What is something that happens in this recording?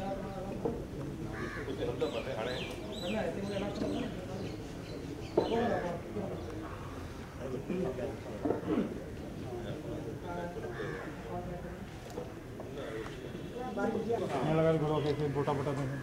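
A crowd of men murmur and talk nearby outdoors.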